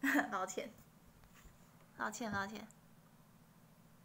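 A young woman laughs softly.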